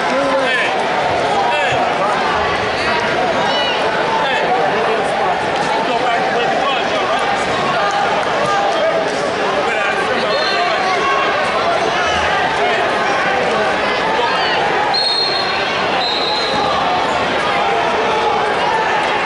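A large crowd murmurs and chatters throughout a big echoing arena.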